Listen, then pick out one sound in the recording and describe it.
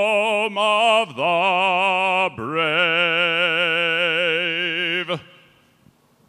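A man sings loudly into a microphone with a strong vibrato.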